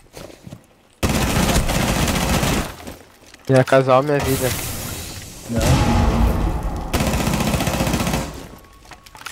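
Wooden boards splinter and crack under gunfire.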